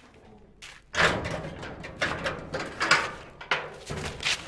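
A man knocks on a metal gate.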